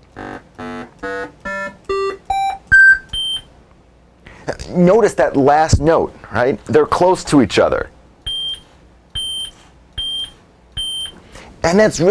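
Short electronic beeps sound in an even rhythm.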